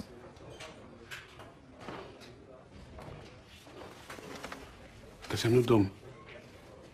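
An older man speaks in a low, quiet voice close by.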